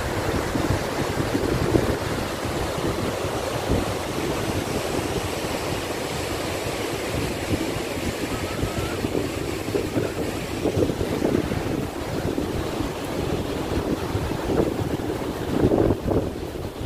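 Water rushes loudly through dam gates.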